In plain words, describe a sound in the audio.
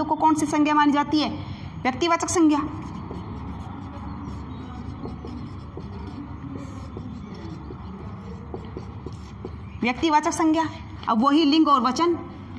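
A woman speaks clearly and calmly, close by.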